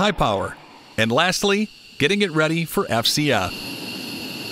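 A man speaks calmly over a headset radio.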